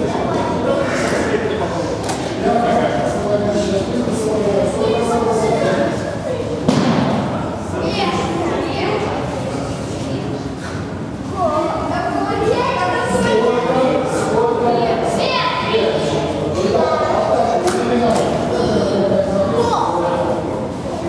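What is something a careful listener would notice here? Young children chatter and call out in an echoing hall.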